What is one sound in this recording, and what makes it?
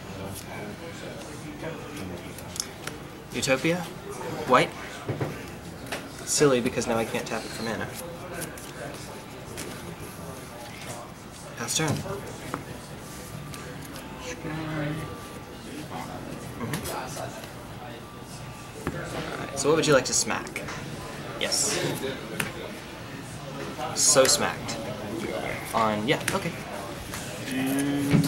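Playing cards riffle and flick as a hand shuffles them.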